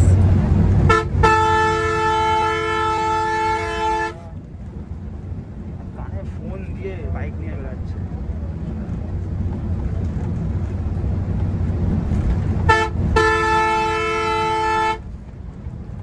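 A bus horn blares in long musical blasts.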